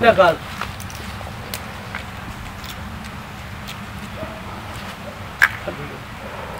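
A crab shell cracks and snaps between fingers.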